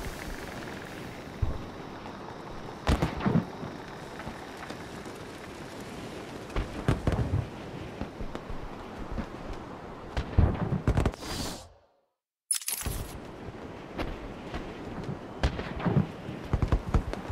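Wind rushes steadily with occasional gusts.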